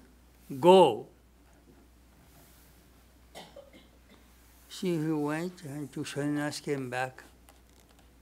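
An elderly man speaks slowly and calmly into a microphone, in short phrases with pauses.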